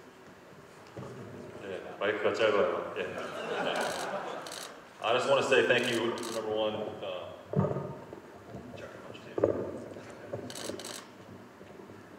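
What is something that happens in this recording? A man speaks into a microphone over a loudspeaker in a large echoing hall.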